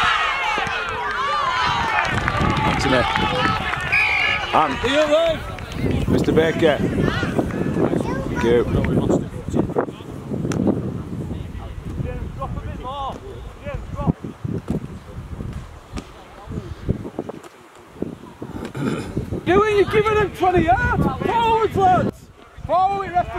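Young men shout calls to one another across an open field.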